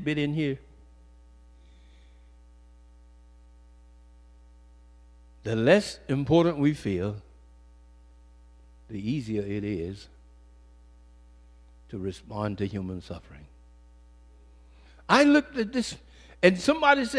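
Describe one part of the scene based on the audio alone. An older man speaks into a microphone with emphasis, in short bursts with long pauses.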